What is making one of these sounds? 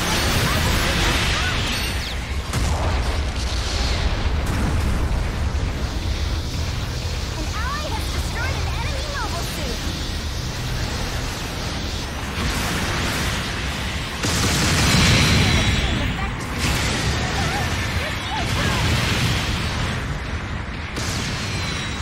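Beam guns fire in sharp bursts.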